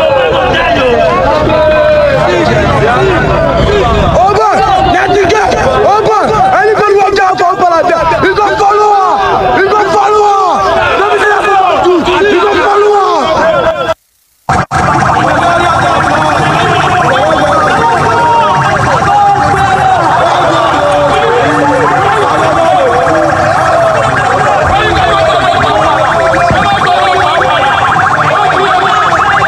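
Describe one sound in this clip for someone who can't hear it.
A crowd of men shouts and chatters loudly close by.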